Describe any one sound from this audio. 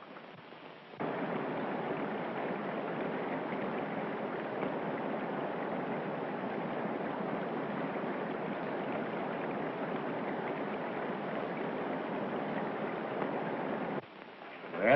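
A river rushes and splashes steadily.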